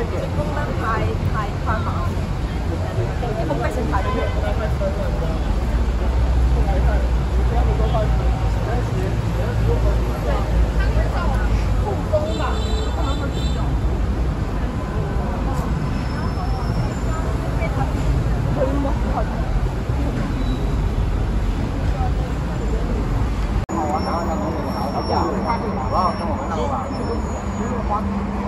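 Young men and women chat nearby on a busy street.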